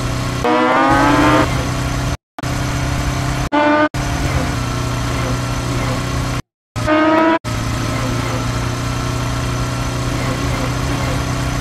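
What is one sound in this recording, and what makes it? A motorcycle engine roars steadily at high speed.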